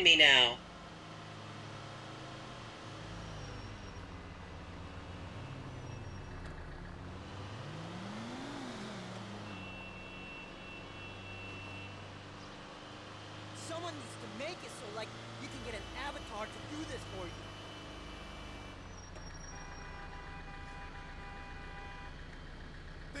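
A van engine hums as the van cruises along a road.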